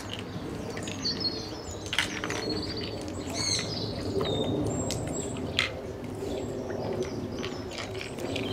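Water splashes and laps as otters move in it.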